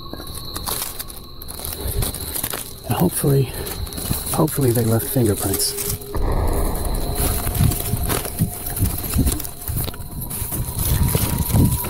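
A plastic sheet and paper crinkle and tear as they are pulled off a tree.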